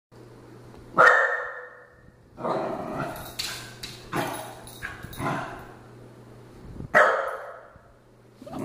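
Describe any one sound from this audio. A small dog barks sharply.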